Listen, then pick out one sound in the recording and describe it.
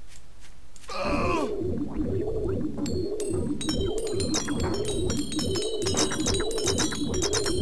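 A magic spell hums and crackles steadily.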